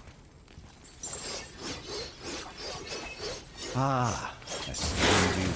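Heavy footsteps crunch over piles of coins and loose metal.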